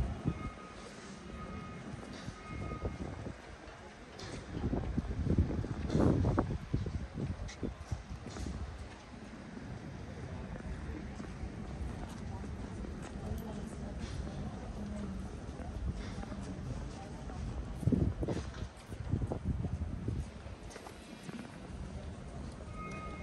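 Wind gusts outdoors, rumbling at times.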